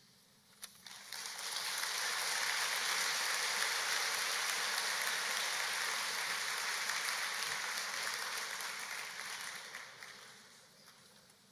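A large crowd applauds.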